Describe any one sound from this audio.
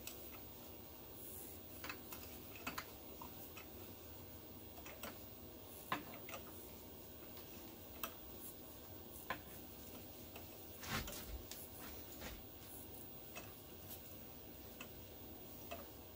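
A hand tap wrench clicks and ticks as it turns in metal.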